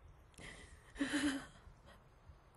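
A middle-aged woman sobs tearfully.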